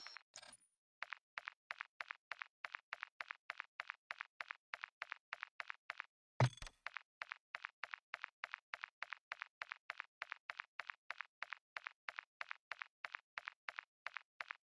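Soft menu clicks tick in a quick, steady rhythm.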